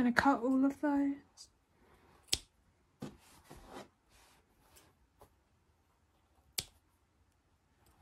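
Scissors snip through yarn.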